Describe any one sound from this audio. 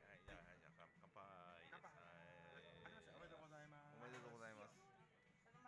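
Two glasses clink together in a toast.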